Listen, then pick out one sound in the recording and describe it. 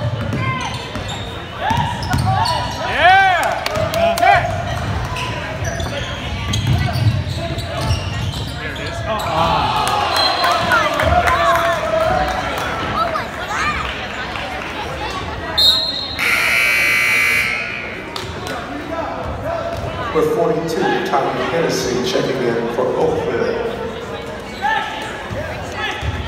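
Sneakers squeak sharply on a hard court in a large echoing gym.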